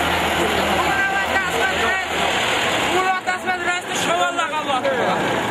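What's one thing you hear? Men shout and call out loudly outdoors.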